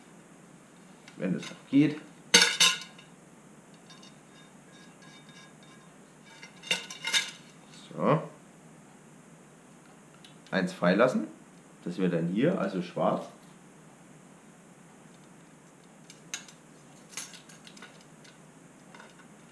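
Metal spokes click and rattle as a bicycle wheel is handled.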